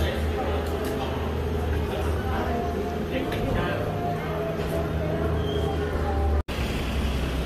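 People chatter nearby.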